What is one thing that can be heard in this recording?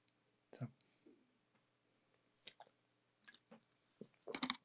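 An older man swallows gulps of water from a bottle.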